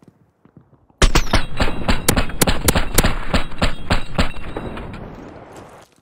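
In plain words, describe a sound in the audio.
A gun fires rapid bursts of shots.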